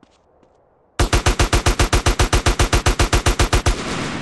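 A rifle fires in a rapid automatic burst.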